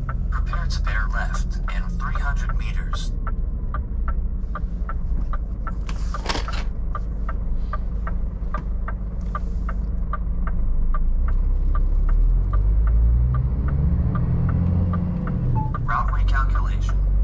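A truck's diesel engine rumbles steadily while driving.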